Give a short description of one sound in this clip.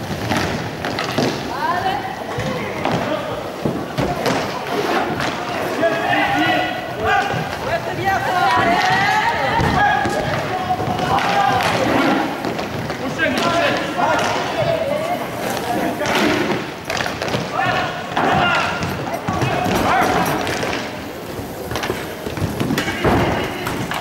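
Inline skates roll and scrape across a hard floor in a large echoing hall.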